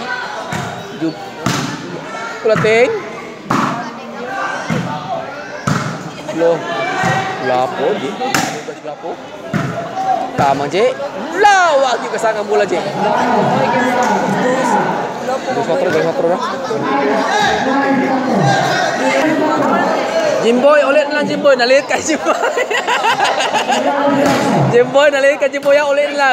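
A basketball bounces sharply on a hard court in a large echoing hall.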